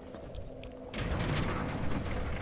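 A heavy metal lever is pulled with a clunk.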